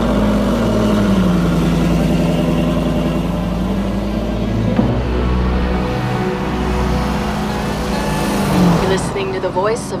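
A car engine rumbles loudly with a deep exhaust note.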